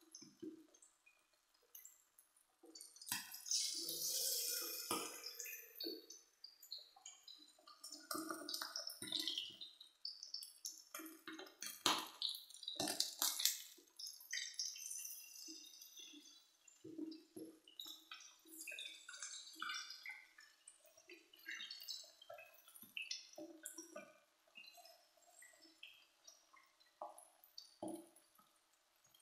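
Oil sizzles and bubbles in a frying pan.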